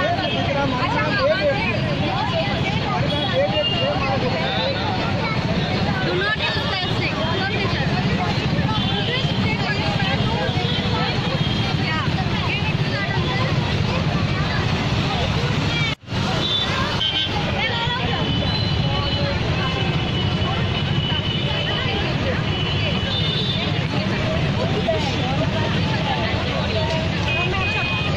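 A crowd of people chatters loudly all around outdoors.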